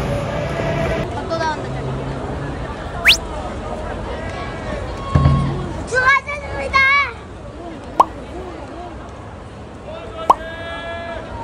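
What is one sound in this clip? A crowd of fans chatters close by.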